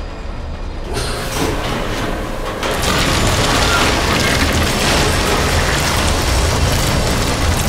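A shredder grinds and crunches wetly, growing louder.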